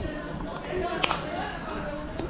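A bat cracks against a ball.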